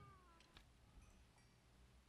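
A pickaxe chips and cracks at stone.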